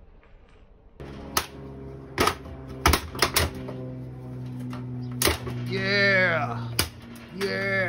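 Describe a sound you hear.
Metal clanks and knocks close by.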